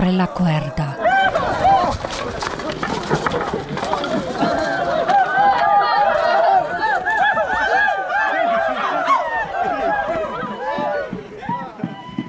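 A crowd of young men shouts and yells outdoors.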